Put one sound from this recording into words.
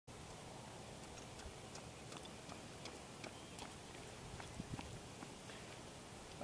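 Running footsteps thud on a track, getting closer.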